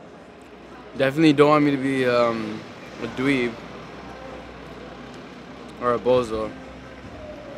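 A young man speaks casually nearby.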